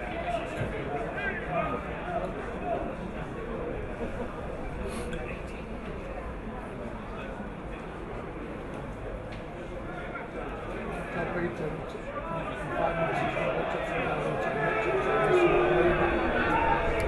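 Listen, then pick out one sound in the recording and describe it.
A small crowd of men and women chatter and call out nearby, outdoors.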